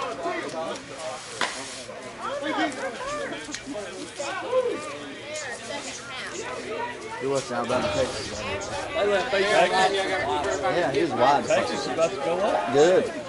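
Several men talk and call out nearby outdoors.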